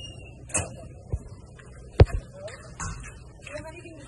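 A metal-framed door clicks and swings open.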